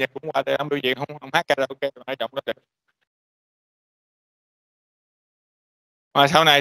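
A man lectures calmly over an online call.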